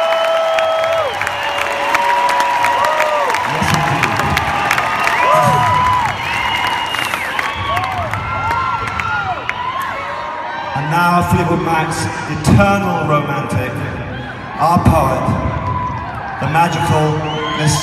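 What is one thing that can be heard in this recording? A large crowd cheers and whistles loudly in a big echoing arena.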